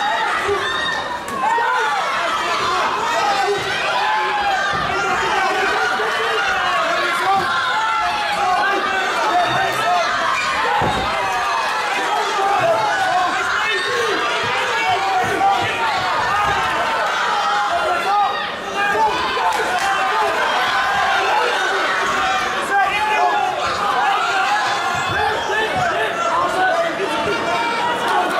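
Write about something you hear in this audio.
A crowd shouts and cheers loudly in an echoing hall.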